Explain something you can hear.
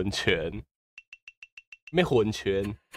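Quick, high electronic ticks sound as a score counts up.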